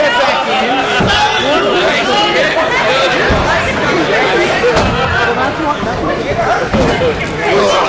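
Bodies thud heavily onto a wrestling mat.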